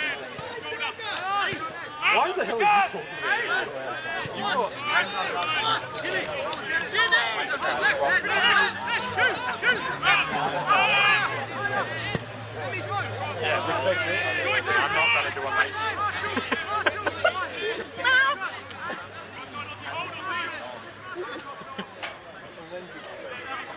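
Young women shout and call to each other across an open field.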